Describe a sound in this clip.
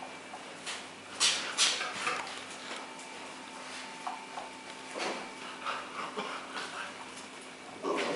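Small bear cubs' claws patter and scrape on a hard tiled floor.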